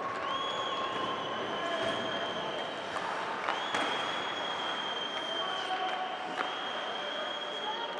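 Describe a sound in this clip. Ice skates scrape and hiss across ice in a large echoing arena.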